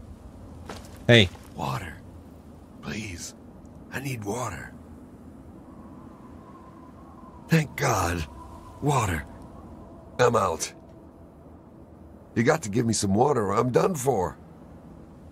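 A man pleads in a weak, hoarse voice, close by.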